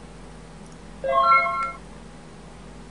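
A game plays a short electronic chime.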